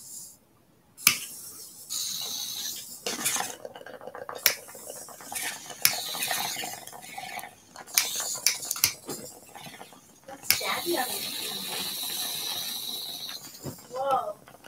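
A torch lighter clicks and hisses with a roaring flame.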